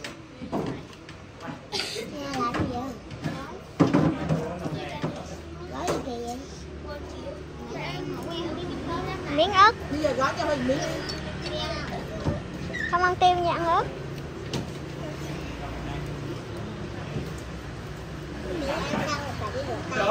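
Children talk and chatter excitedly close by.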